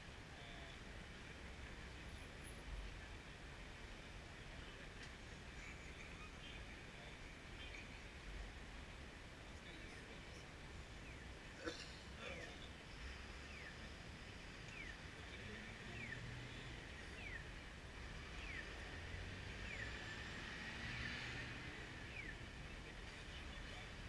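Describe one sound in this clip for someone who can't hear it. City traffic rumbles steadily outdoors.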